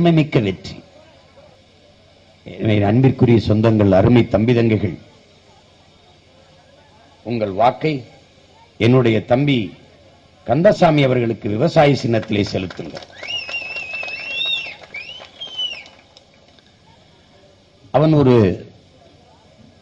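A man gives a speech with animation through a microphone and loudspeakers.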